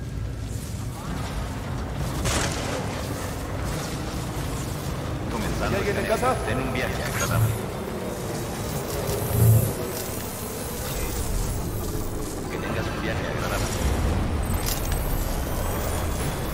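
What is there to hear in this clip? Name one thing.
A vehicle engine hums and rumbles as it drives.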